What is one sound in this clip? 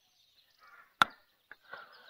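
A golf putter taps a ball with a short click.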